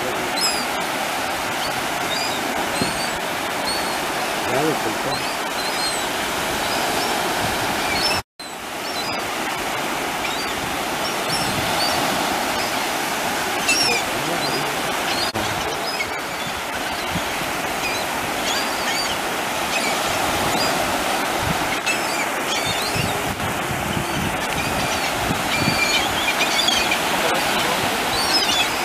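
Waves break on the shore.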